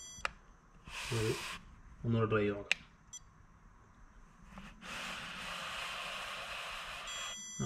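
An electronic stud finder beeps.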